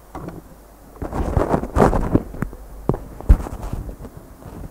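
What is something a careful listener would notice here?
Papers rustle and knock close to a microphone.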